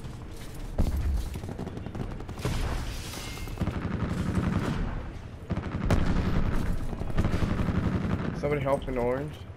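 A gun fires repeated loud shots.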